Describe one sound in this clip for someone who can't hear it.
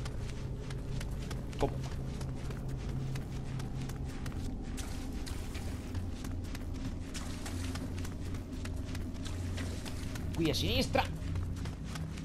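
Bare feet run quickly on stone.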